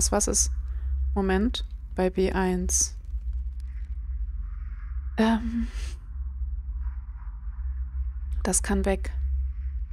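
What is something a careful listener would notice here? A young woman speaks with animation into a microphone, close by.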